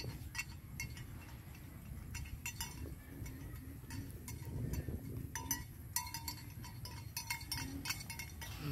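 Wind rumbles and blows steadily outdoors.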